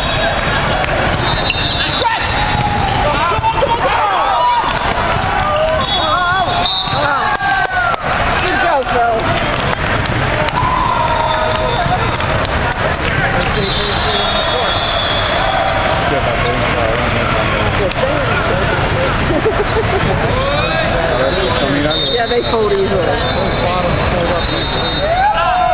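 A crowd of players and spectators chatters and shouts across a large echoing hall.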